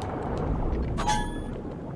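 A bright chime rings once.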